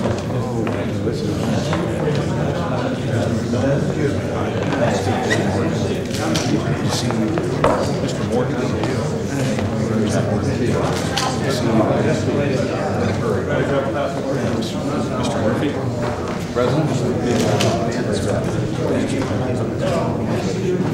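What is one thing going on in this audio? An older man greets guests warmly, close by.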